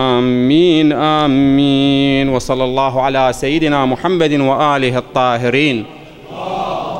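A middle-aged man chants in a long, melodic voice through a microphone.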